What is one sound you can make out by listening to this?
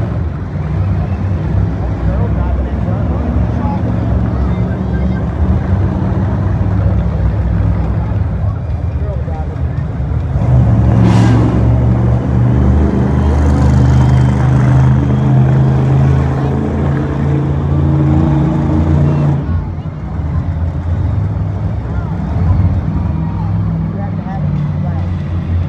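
Monster truck engines rumble and roar loudly in a large echoing arena.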